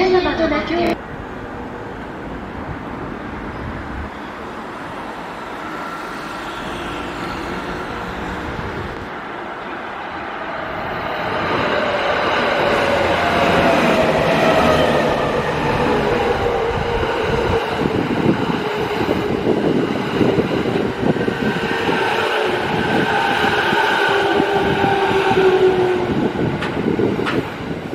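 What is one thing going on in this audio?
An electric train approaches and rumbles past close by.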